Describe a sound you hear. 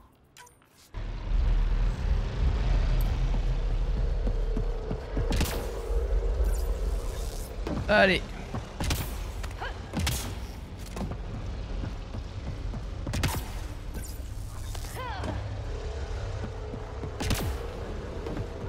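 Heavy armored footsteps thud on a metal floor.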